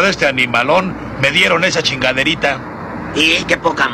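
A cartoon character speaks with animation in a man's voice.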